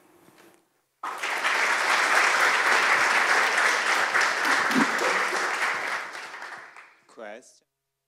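A large audience applauds loudly in an echoing hall, then the clapping fades out.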